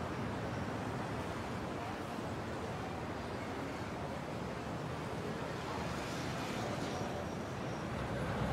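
City traffic rumbles steadily as cars drive along a street.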